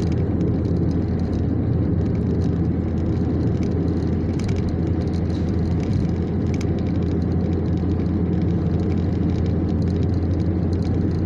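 Tyres roar on the road, heard from inside a car.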